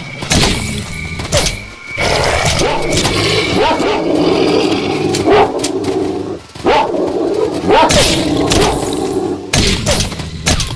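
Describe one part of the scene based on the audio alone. Dogs snarl and yelp.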